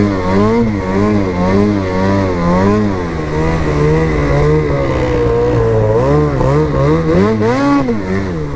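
A snowmobile engine drones loudly, its pitch rising and falling as it revs.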